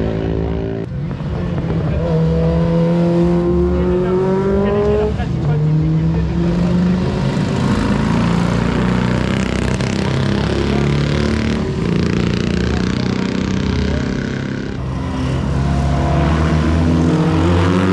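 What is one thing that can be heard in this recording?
Small racing engines buzz and rev loudly as karts speed past.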